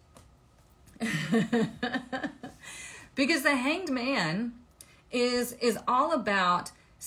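A young woman talks with animation close to the microphone.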